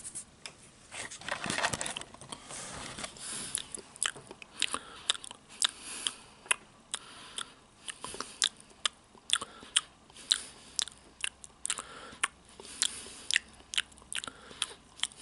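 A middle-aged man speaks softly, very close to a microphone.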